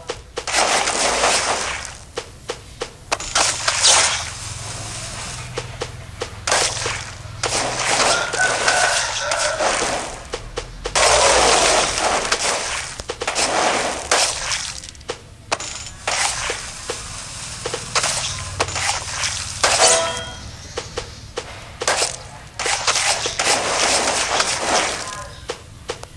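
Fruit is sliced with quick swishing swipes and wet splatters, over and over.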